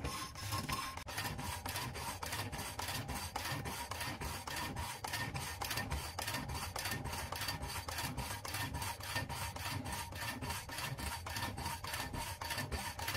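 An electric motor hums steadily.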